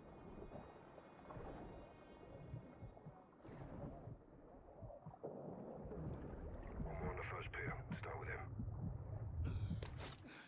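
Water rumbles and bubbles in a low, muffled way underwater.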